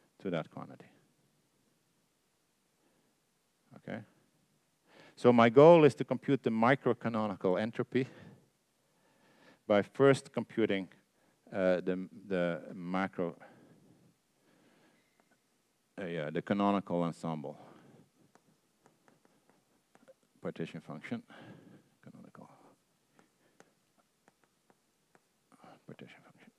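A man lectures calmly through a microphone.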